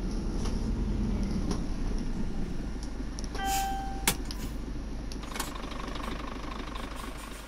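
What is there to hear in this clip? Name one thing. A truck engine rumbles low and slows to an idle.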